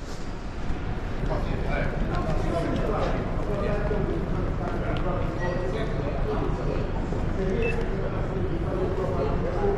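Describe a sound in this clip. Several people murmur and chatter nearby.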